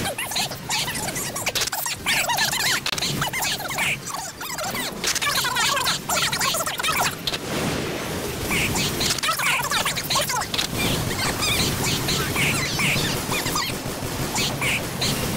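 Rapid gunfire rattles and bursts.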